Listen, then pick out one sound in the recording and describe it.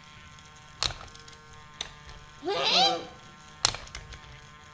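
Plastic toy parts click and clack as they are moved by hand.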